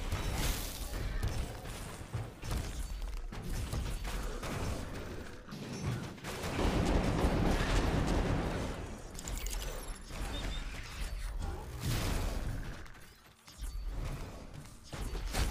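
Fantasy battle sound effects of magic blasts and zaps play throughout.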